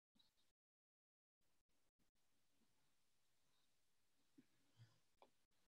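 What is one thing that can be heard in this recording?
A woman laughs softly through an online call.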